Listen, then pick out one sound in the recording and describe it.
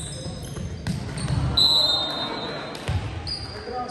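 A volleyball is spiked hard, with a sharp slap.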